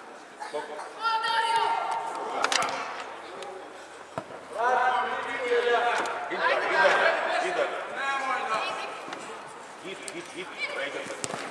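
Children shout across a large echoing hall.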